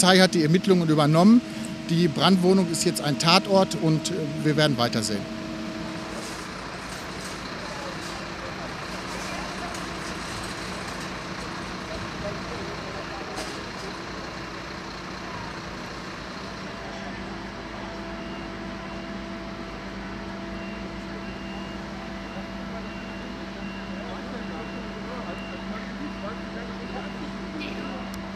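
An engine idles with a steady low hum.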